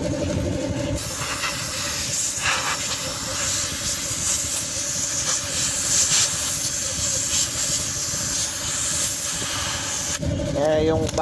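Compressed air hisses loudly from an air nozzle.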